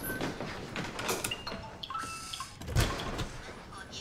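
A door lock rattles.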